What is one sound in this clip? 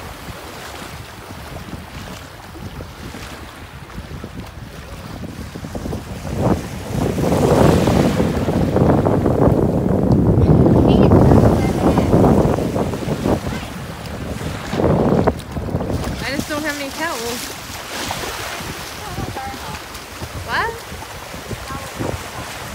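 Feet splash through shallow water as a person wades.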